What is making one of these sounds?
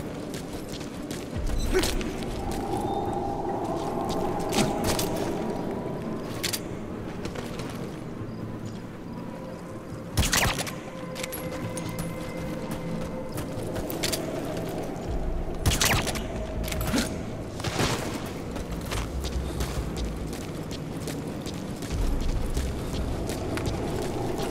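Footsteps crunch on gravelly ground.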